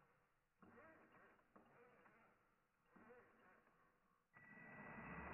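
A toy car's steering servo whirs in short bursts.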